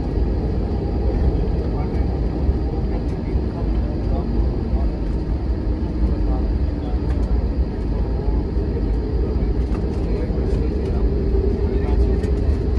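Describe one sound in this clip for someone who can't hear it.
Wheels rumble and thump over the runway.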